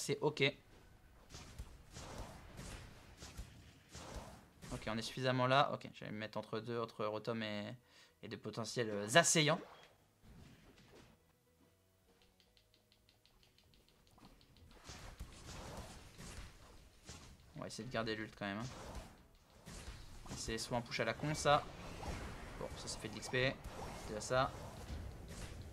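Video game attacks whoosh and burst.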